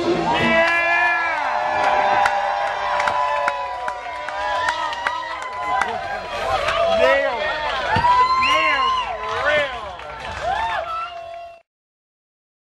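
A band plays along with drums and guitar.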